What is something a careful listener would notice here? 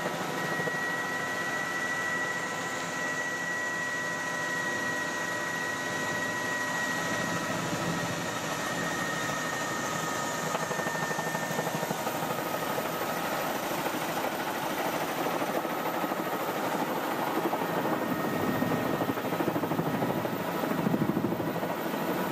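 A helicopter's engine whines and its rotor thumps loudly throughout.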